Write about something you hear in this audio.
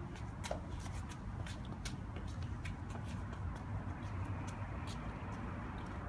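Small shoes patter on concrete as young children walk and run.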